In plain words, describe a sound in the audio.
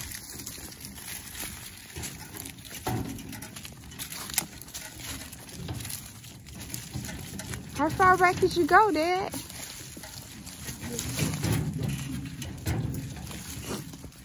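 Footsteps crunch through dry leaves and twigs.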